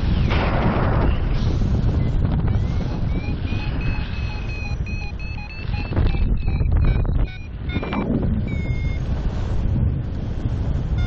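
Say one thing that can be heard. Wind roars and buffets loudly past the microphone.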